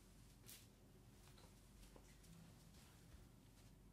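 Footsteps pad across a hard floor.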